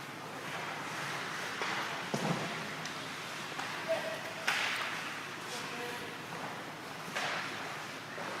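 Skates scrape across ice in an echoing rink.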